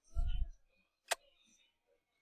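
A short click sounds as a book opens.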